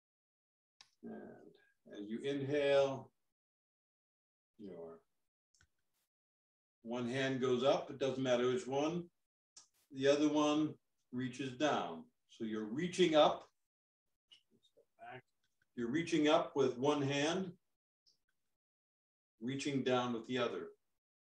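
An elderly man speaks calmly and slowly, close by, with pauses between phrases.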